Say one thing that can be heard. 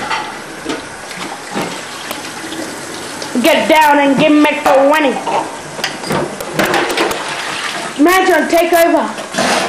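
Dishes clink against the sink.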